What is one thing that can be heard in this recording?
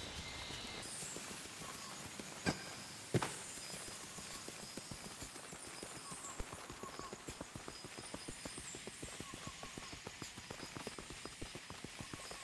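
Footsteps pad steadily along a forest path.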